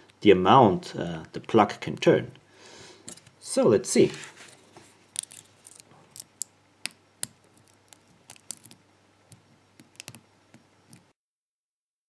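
Metal lock picks click and scrape inside a padlock.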